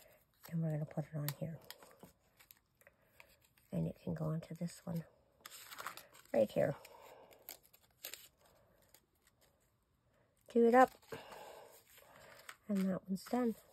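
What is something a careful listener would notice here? Paper cutouts rustle and slide across a tabletop.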